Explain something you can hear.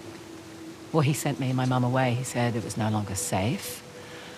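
A young woman speaks with feeling, her voice rising.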